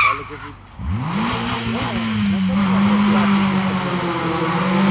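Tyres skid and scatter gravel as a car slides through a bend.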